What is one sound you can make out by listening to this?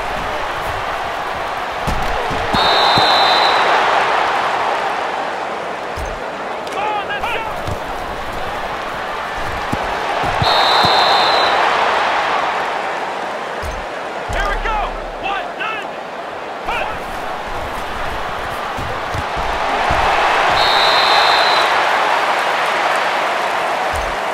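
A large stadium crowd roars and cheers in swelling waves.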